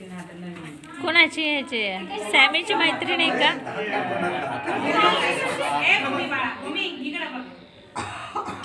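Children shout and laugh excitedly close by.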